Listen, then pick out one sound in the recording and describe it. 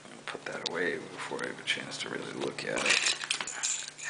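A bunch of metal keys jingles as it is moved.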